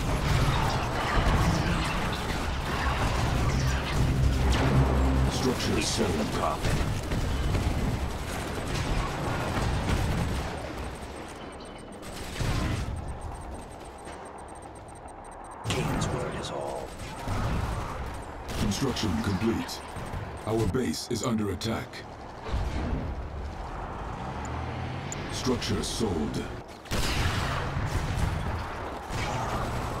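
Laser weapons fire with sharp buzzing zaps.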